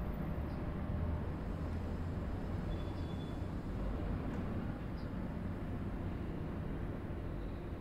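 A diesel locomotive engine drones as it passes close by.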